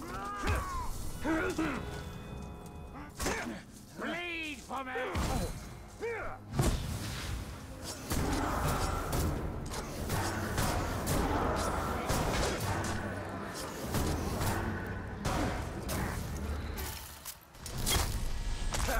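Swords clash and slash in quick strikes.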